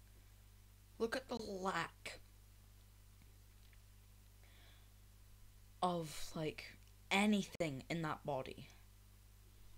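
A teenage girl talks with animation, close to a microphone.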